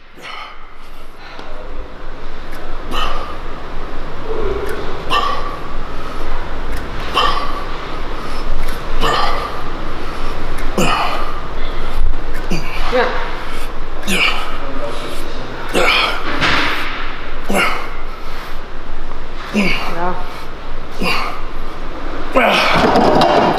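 A weight machine clanks rhythmically with each press.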